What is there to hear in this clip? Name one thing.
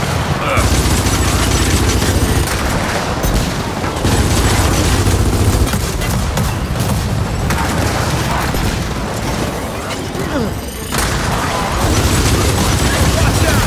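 Rifles fire in rapid, booming bursts.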